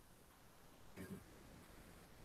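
A young woman speaks briefly and softly through a computer microphone.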